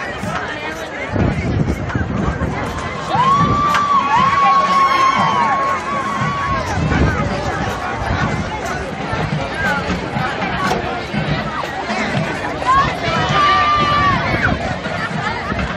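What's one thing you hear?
A high school marching band plays brass and drums outdoors in a stadium.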